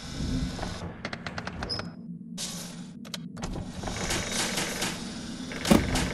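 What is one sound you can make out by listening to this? A metal drawer slides open.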